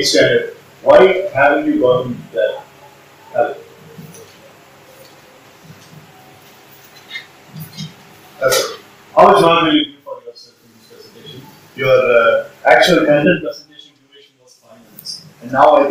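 A man speaks with animation, close by, in pauses.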